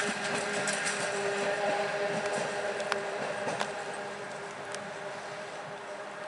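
A small train rumbles along the track and fades into a tunnel.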